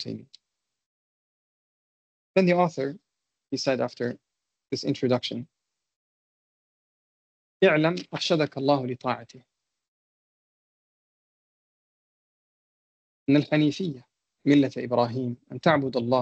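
A man speaks calmly in short phrases with long pauses, heard through an online call.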